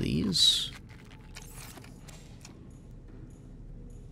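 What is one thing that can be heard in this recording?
A game menu closes with a soft electronic swish.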